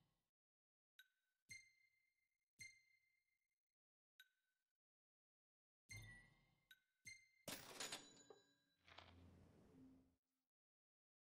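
Short electronic chimes ring out one after another as menu choices are made.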